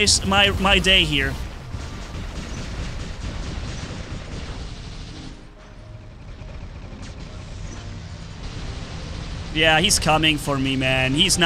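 Heavy gunfire and explosions rumble steadily.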